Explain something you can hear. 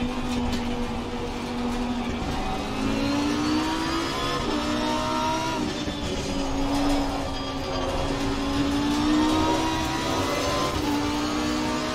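A racing car engine roars loudly, its pitch rising and dropping as the gears change.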